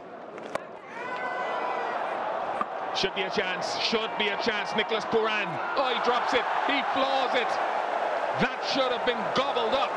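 A large crowd roars and cheers loudly.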